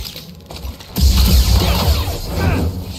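Fire bursts and crackles in explosions.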